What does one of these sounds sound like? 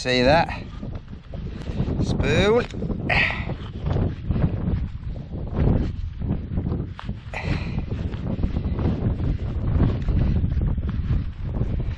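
A gloved hand rummages and crumbles through loose soil.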